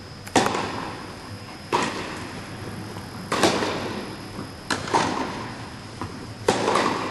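Tennis balls are struck with rackets in a large echoing indoor hall.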